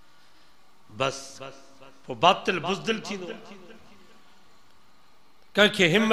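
An elderly man preaches with feeling into a microphone, heard through loudspeakers.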